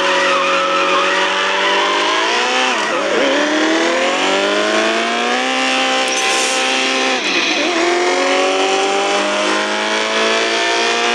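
A car engine revs higher and higher, dropping briefly at each gear change.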